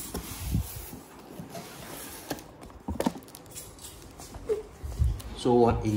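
Cardboard flaps scrape and thud as a box is opened.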